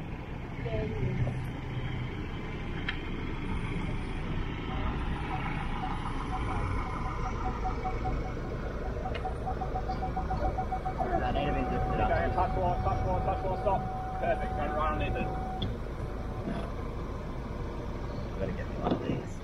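A truck engine idles with a low rumble nearby.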